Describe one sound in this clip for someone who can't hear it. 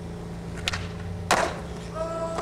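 A skateboard lands hard with a clack.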